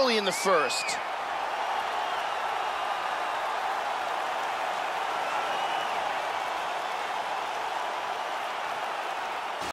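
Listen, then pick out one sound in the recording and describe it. A large crowd roars and murmurs steadily in a big arena.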